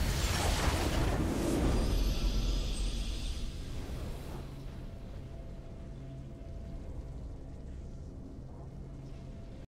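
A triumphant game fanfare swells and then fades to a quiet, steady tone.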